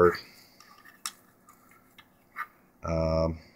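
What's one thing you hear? Small plastic parts click softly as fingers handle them.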